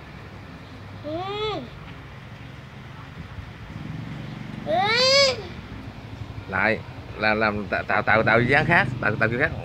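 A young boy calls out in a high, rising and falling voice close by.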